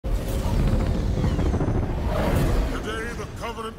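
A large craft roars overhead with a deep rumble.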